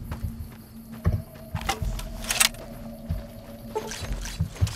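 Heavy footsteps thud on dirt.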